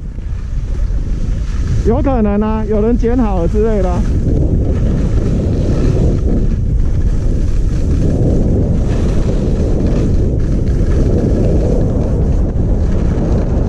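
Skis scrape and hiss over packed snow, growing faster.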